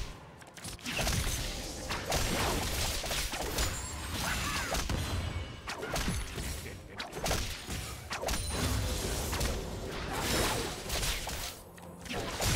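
Video game spell effects and weapon hits clash in a fast battle.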